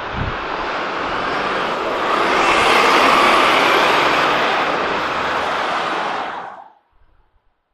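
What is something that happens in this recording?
A city bus drives past close by.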